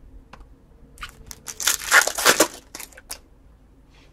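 Trading cards rustle and slide against each other in a hand.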